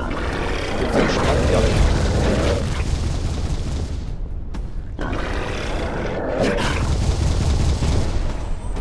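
A heavy blade whooshes and strikes with crunching hits.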